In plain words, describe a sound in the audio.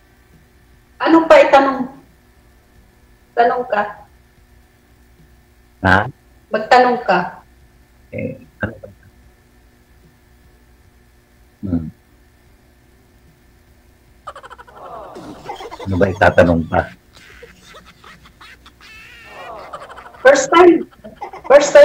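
A middle-aged woman talks casually over an online call.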